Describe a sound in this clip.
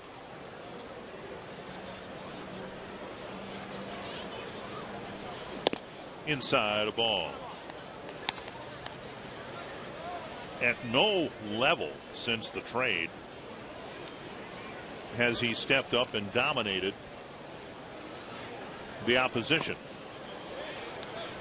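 A crowd murmurs in the stands of an outdoor ballpark.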